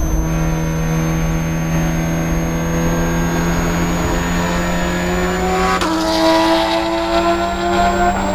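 A four-cylinder Spec Miata race car engine accelerates at full throttle, heard from inside the cabin.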